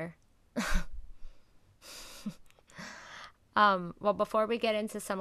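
A woman speaks calmly and close through a microphone, as if in an online call.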